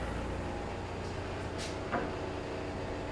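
A wooden board is set down on a workbench with a light knock.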